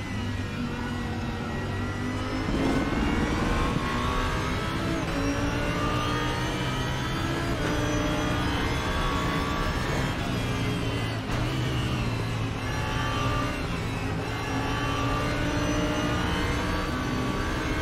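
A racing car engine roars steadily, rising and falling in pitch as the gears change.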